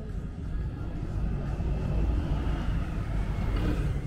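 A motor scooter rides past nearby.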